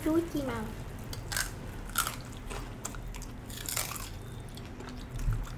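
Crispy fried food crunches as it is bitten.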